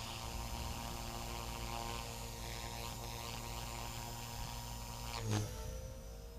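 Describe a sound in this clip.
A model helicopter's motor whines steadily at high pitch, then drops away.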